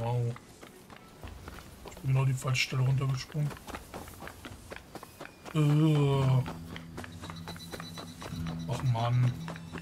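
Quick footsteps run over dirt and grass.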